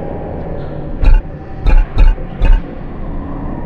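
Game menu sounds click several times.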